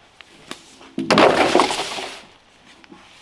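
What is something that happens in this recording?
Bamboo poles slide and clatter down a leafy slope.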